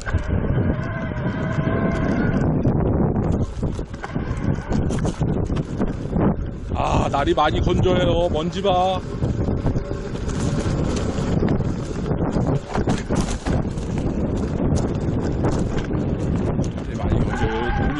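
Bicycle tyres rumble and rattle over a rough dirt trail.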